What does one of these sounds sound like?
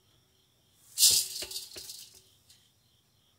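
A plastic tray clatters and rattles as it is lifted.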